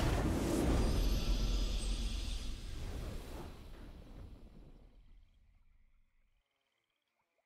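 A triumphant game fanfare swells and slowly fades.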